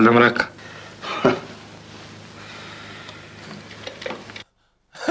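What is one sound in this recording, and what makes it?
A middle-aged man speaks quietly.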